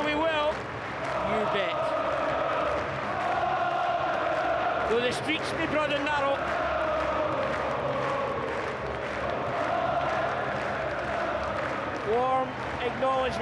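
A large crowd sings loudly in an open stadium.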